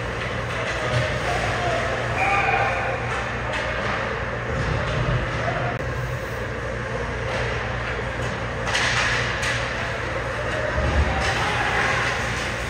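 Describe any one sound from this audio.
Hockey sticks clack against the ice and each other.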